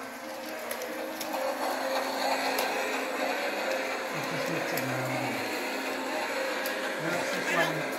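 A toy train rattles steadily along its track.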